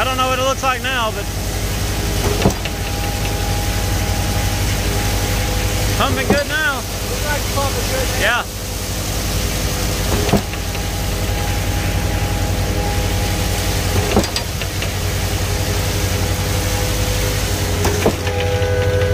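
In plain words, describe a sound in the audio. Wet concrete pours and slides down a metal chute onto a grate.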